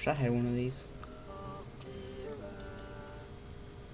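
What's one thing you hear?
Electronic tones chime softly as a computer boots up.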